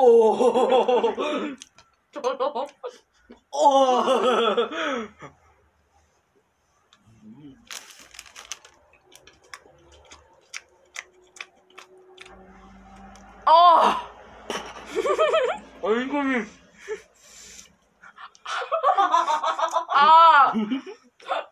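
A teenage boy laughs.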